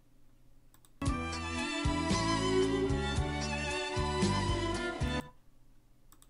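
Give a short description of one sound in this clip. A synthesized melody plays through speakers.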